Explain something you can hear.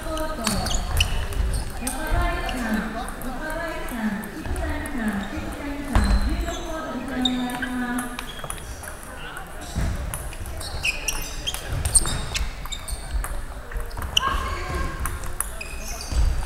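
A ping-pong ball clicks on paddles and a table in a rally.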